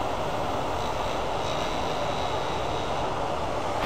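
A tool scrapes against a spinning workpiece.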